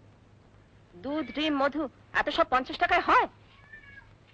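A middle-aged woman answers nearby in a calm voice.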